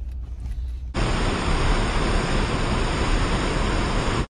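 A river rushes and churns over rocks.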